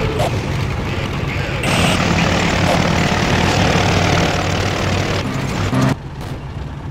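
Tank engines rumble and clank steadily.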